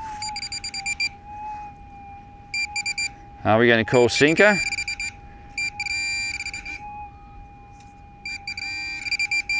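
Hands scrape and dig through sand.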